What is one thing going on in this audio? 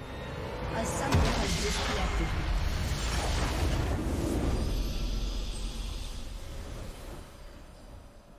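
A loud, booming burst of magic erupts and slowly fades away.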